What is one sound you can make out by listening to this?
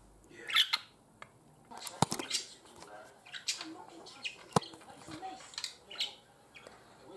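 A budgerigar chirps and squawks in short bursts.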